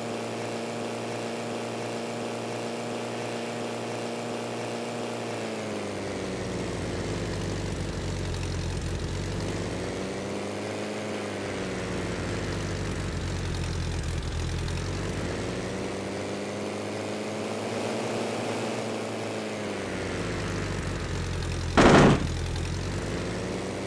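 A small propeller engine drones steadily, its pitch rising and falling as it speeds up and slows.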